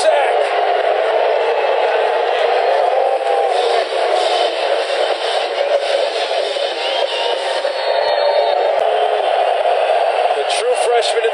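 A large crowd roars and cheers steadily in an open stadium.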